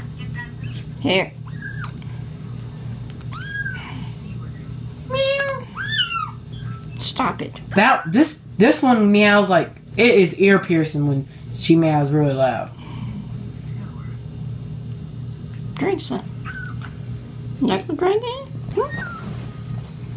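A kitten meows in high, thin cries.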